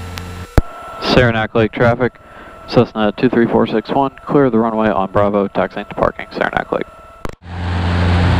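A man speaks calmly through a headset microphone.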